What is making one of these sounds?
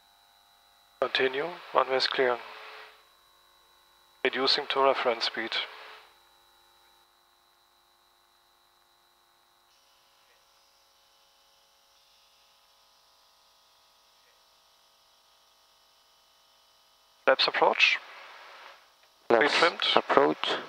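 A man speaks in short, calm phrases close by.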